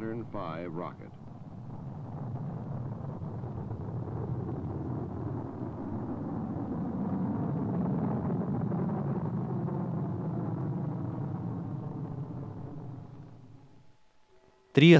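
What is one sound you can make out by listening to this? A rocket engine roars with a deep rumble, swells and then fades away.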